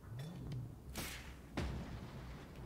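A harpoon fires with a sharp bang.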